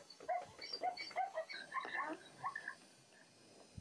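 A hyena giggles and yelps in quick bursts.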